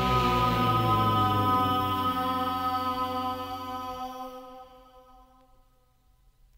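Music plays from a record player and fades out.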